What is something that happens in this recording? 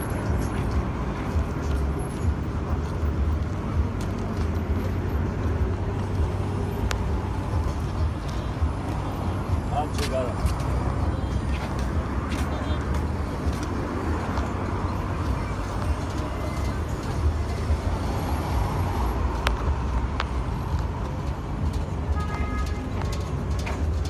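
Traffic rumbles steadily past outdoors.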